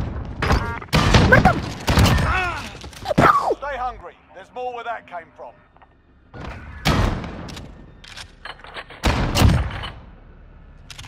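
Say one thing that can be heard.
A shotgun fires several loud blasts.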